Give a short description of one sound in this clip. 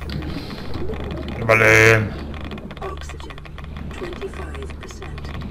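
Bubbles gurgle and burble underwater.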